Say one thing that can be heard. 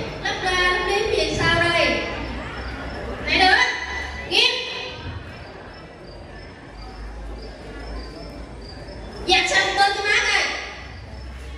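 A woman sings through a microphone in a large, echoing hall.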